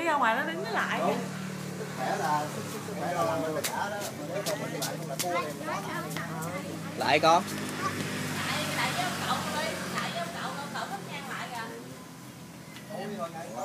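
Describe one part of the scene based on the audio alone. An elderly man and woman talk nearby.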